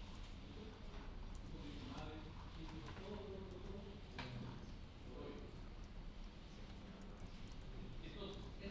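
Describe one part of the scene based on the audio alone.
A man speaks calmly and steadily into a microphone, explaining.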